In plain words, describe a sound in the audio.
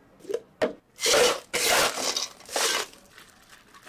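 Ice cubes clatter into plastic cups.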